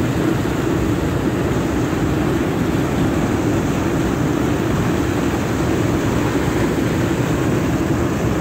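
Water roars steadily as it pours over a weir and churns into foam below.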